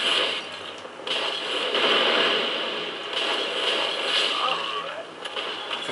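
A burst of fire roars loudly and dies away.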